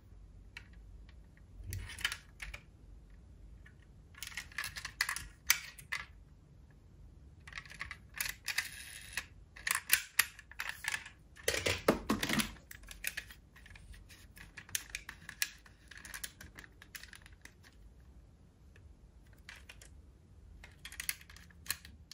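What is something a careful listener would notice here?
Small metal toy cars clink and rattle as they are handled and rummaged through.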